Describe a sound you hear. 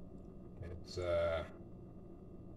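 A man lets out a short, satisfied vocal sound close by.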